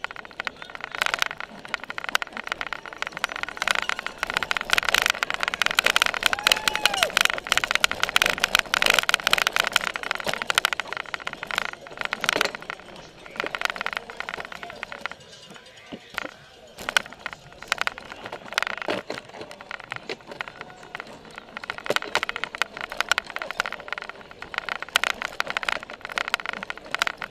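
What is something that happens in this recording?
A bicycle rattles and clatters over a bumpy dirt track.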